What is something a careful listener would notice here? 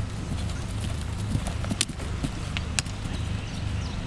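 A horse's hooves thud on grass as it canters past.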